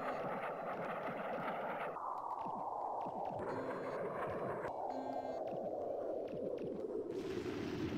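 Laser blasts zap rapidly.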